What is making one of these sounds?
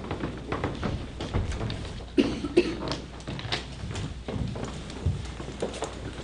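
Papers rustle.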